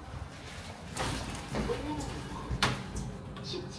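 Elevator doors slide and thump shut.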